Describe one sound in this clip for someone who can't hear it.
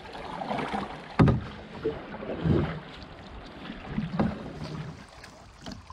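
River water rushes and splashes around a canoe.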